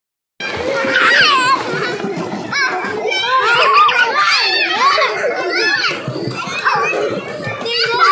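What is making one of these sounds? Water splashes in a pool.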